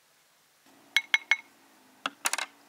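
A glass bowl clinks against a metal tray.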